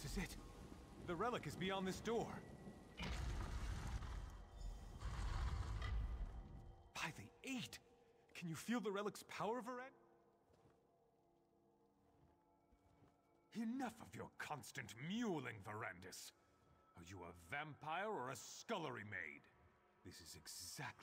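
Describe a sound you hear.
A man talks calmly through a microphone.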